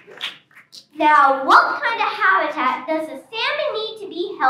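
A young girl speaks clearly into a microphone over loudspeakers.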